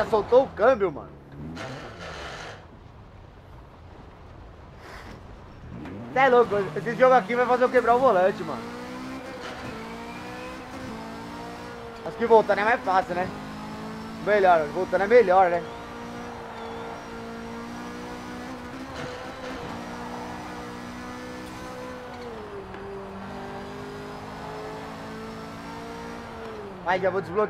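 A racing car engine roars and revs up through the gears, rising and falling in pitch.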